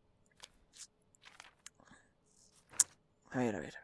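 A paper page flips over with a soft rustle.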